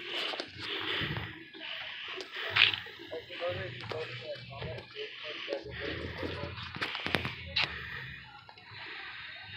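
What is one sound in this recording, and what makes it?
A firework fountain hisses and crackles on the ground outdoors.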